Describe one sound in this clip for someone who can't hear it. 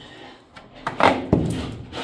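A trowel clinks against a plaster bucket.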